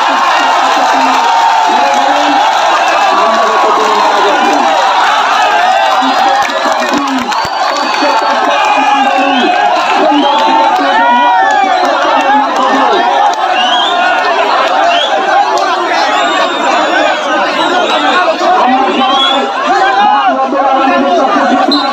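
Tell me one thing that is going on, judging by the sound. A man shouts excitedly close by.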